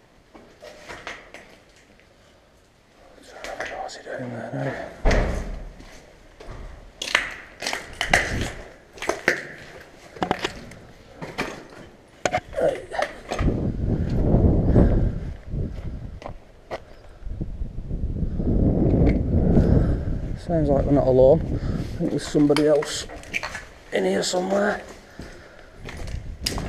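Footsteps crunch over debris and broken glass.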